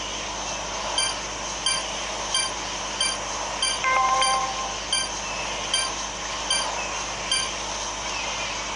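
A game beeps rapidly as a timer runs low.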